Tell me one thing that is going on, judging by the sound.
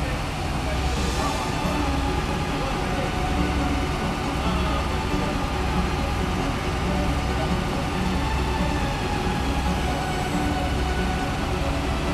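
A fire engine idles nearby with a steady, low rumble.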